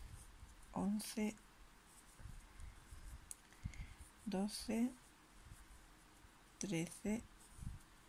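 A crochet hook softly rustles through yarn.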